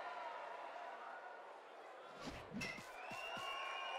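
A bat sharply cracks against a ball.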